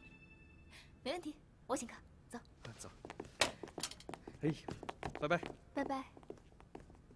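A young woman speaks warmly and cheerfully.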